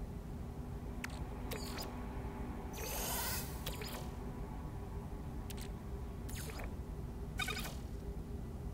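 Soft interface clicks and chimes sound.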